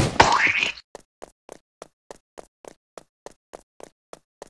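Quick footsteps patter lightly and evenly.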